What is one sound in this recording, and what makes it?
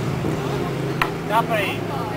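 A skateboard clacks sharply on a wooden ramp.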